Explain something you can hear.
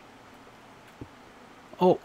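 A stone block is set down with a dull knock.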